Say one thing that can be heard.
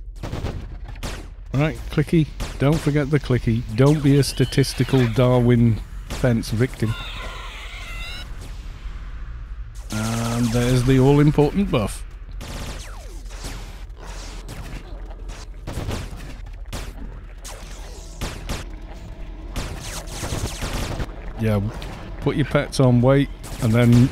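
Spell and combat effects from a video game crackle and burst.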